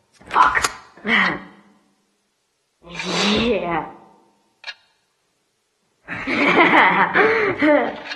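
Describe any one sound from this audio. A man laughs loudly, close by.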